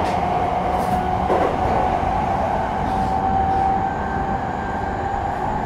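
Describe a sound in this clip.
A stopped electric train hums steadily.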